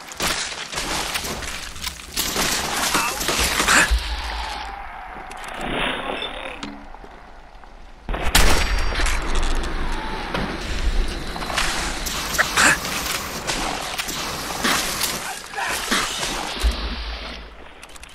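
Rifle shots crack out again and again.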